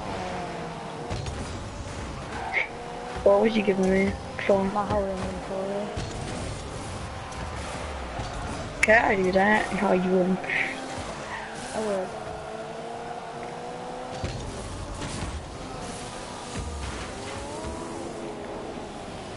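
A car engine hums and rises and falls in pitch as it speeds along.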